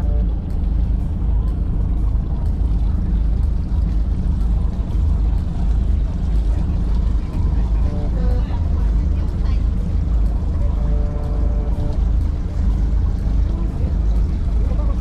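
A fishing reel clicks and whirs as line is wound in.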